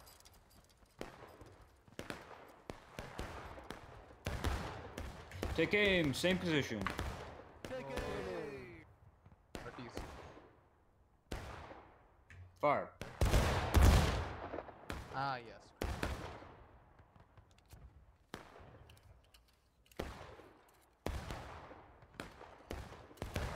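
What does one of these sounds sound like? Gunshots crack and boom, echoing across open ground.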